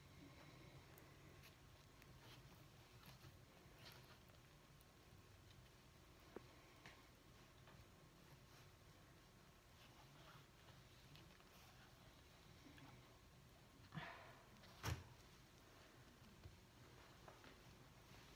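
Gloved hands softly smear wet paint across a board.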